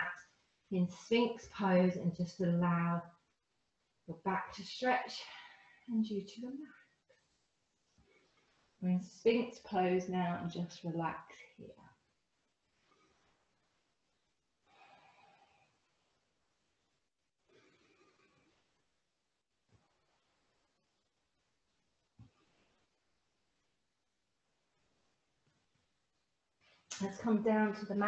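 A woman speaks calmly and close by, in short phrases with long pauses.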